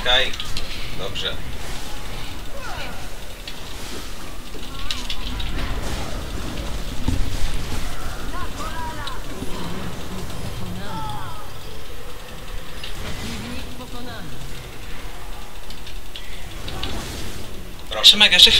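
Game spell effects whoosh and clash in a battle.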